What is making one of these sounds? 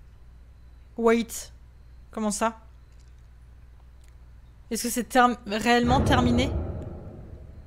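A young woman speaks softly into a close microphone.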